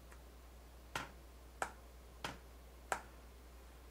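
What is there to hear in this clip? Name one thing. Keys click softly as fingers press them.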